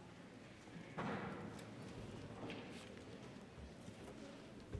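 A man speaks quietly in a large echoing room.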